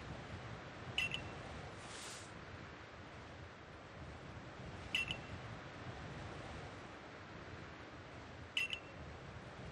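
A short chime sounds a few times.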